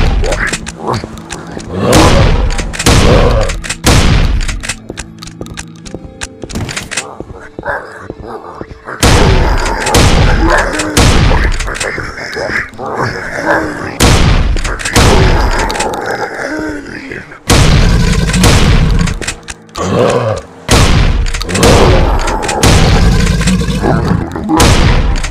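Monsters growl and snarl up close.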